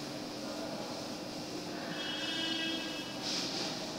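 A cloth rubs across a chalkboard.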